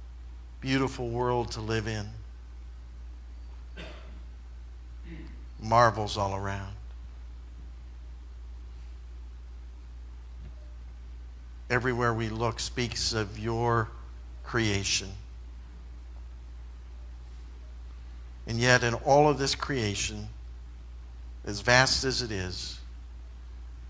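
A man speaks calmly in short phrases, with long pauses between them.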